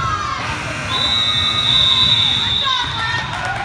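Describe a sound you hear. A referee's whistle blows one long, steady blast.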